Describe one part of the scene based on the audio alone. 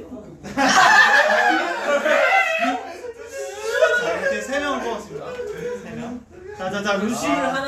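Young men talk and laugh excitedly over one another close by.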